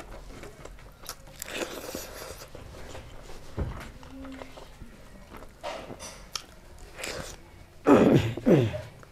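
A woman chews food noisily close to a microphone.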